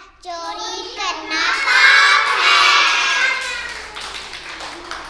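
A young boy speaks loudly and eagerly, close by.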